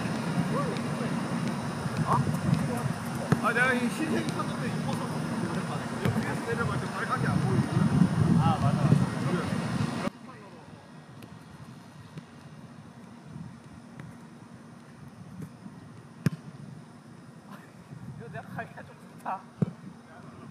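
A football is kicked on artificial turf.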